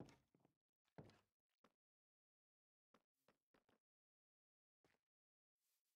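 Footsteps tap softly on the ground.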